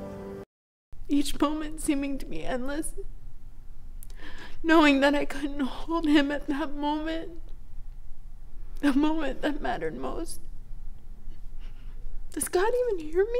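A young woman speaks tearfully and with emotion, close by.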